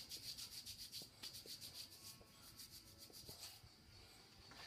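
Hands rub together briskly.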